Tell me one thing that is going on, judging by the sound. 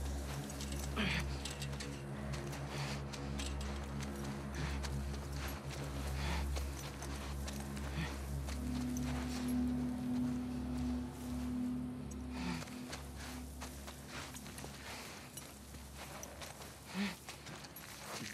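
Tall grass rustles as someone crawls through it.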